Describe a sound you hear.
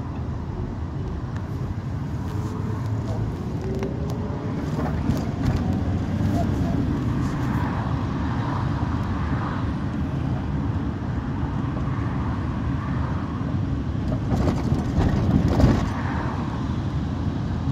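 A car engine hums and road noise rumbles steadily from inside a moving car.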